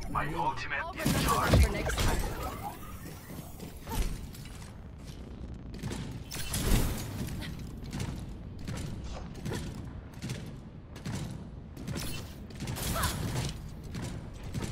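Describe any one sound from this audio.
Weapon blasts fire in short, sharp bursts.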